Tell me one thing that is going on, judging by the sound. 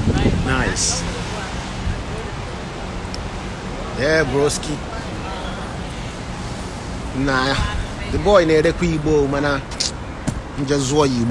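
Traffic hums on a wet street outdoors.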